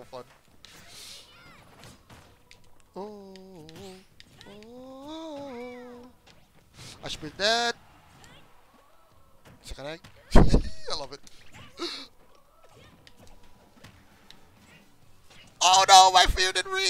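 Video game punches, blasts and explosions crack and thud in quick bursts.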